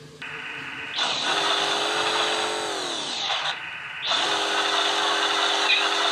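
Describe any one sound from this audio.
A toy truck engine revs up and down in a game.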